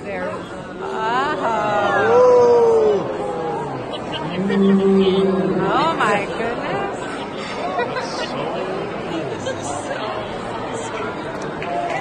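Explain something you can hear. A group of people sings together nearby in a large echoing hall.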